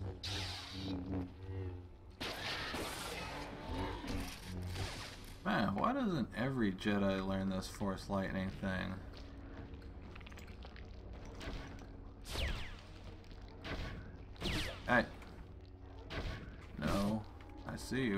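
A lightsaber hums and clashes.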